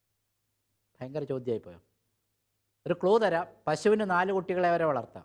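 A middle-aged man speaks calmly and expressively into a clip-on microphone.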